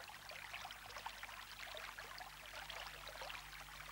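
Water splashes softly among rocks.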